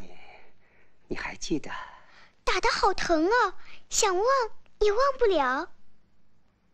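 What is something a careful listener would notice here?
A young girl speaks playfully and sweetly, close by.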